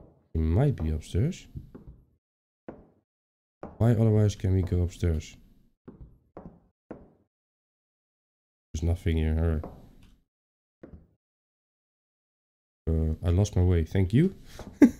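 A young man talks close to a microphone in short bursts, with pauses between them.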